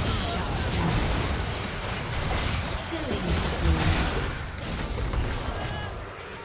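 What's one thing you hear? Magic spells burst and crackle in a fast fight.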